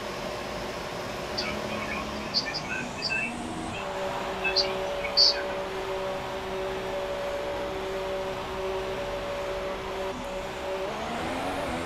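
A racing car engine hums steadily at low speed.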